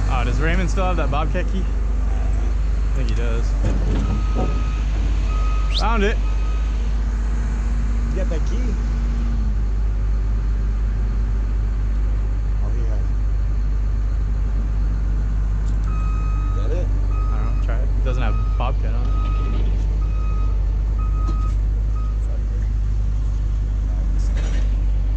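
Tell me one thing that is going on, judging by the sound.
A heavy diesel engine idles with a steady low rumble nearby.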